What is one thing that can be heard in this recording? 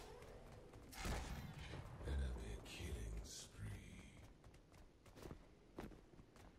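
A sword swings and strikes with a whoosh.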